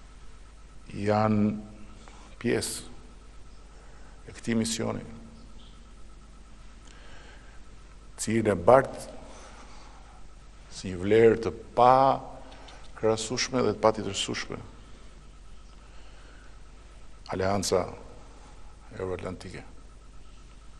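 A middle-aged man speaks into a microphone in short, measured bursts with pauses between them.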